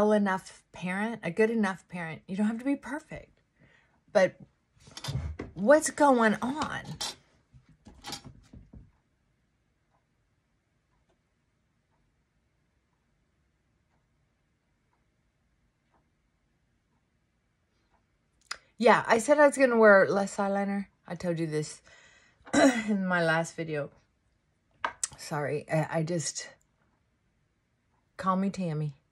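An older woman talks calmly and close by, with pauses.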